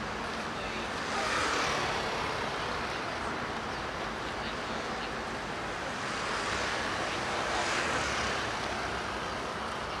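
Motor scooters pass by with rising and fading whooshes.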